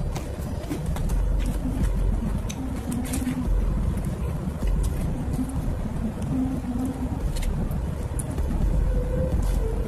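Crisp fried pastry crackles and crunches.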